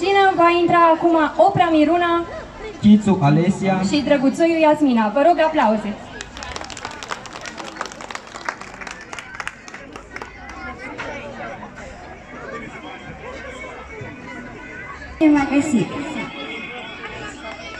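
A young woman speaks animatedly through a loudspeaker outdoors.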